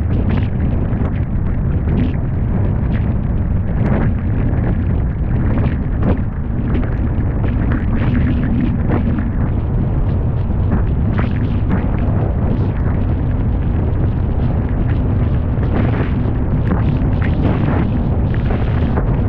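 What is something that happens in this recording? Rain patters against a vehicle.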